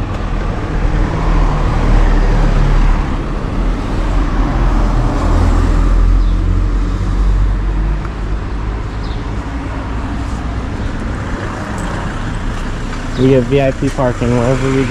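A scooter engine idles with a low rumble.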